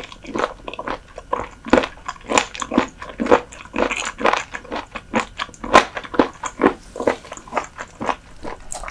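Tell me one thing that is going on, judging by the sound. A young woman chews crunchy food with wet smacking sounds close to a microphone.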